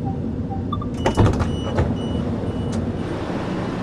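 Door warning beeps sound on a train.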